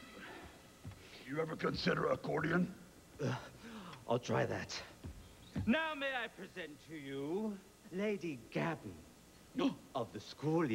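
A man speaks loudly and with animation nearby.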